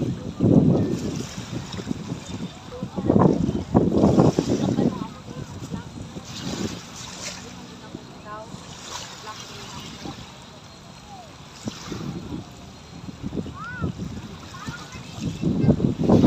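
Small waves lap and splash against the shore.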